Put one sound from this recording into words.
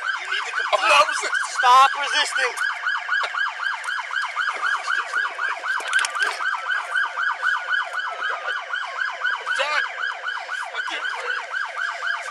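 Another man shouts back in distress.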